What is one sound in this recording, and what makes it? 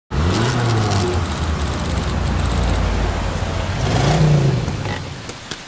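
A car engine hums as it drives slowly past.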